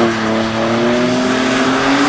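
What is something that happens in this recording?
Tyres squeal as a car slides through a bend.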